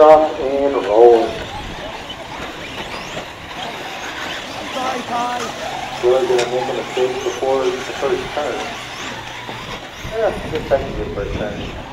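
Small electric race cars whine and buzz as they speed around a track.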